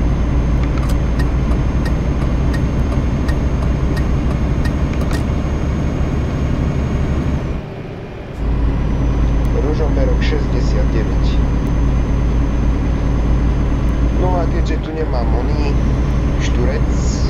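A truck engine hums steadily while driving along a highway.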